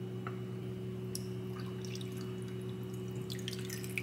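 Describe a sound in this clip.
Water pours from a jug into a container.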